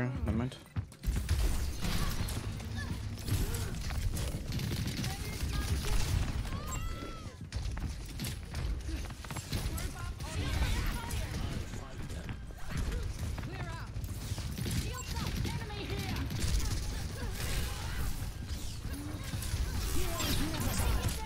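Game explosions boom with a low rumble.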